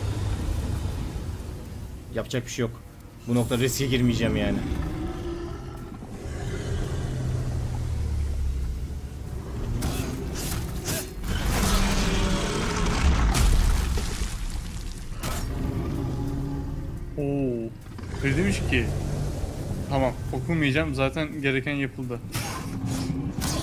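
A huge creature growls with a deep rumble.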